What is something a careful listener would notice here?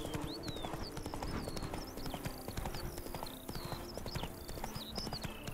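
A horse gallops, hooves thudding steadily on the ground.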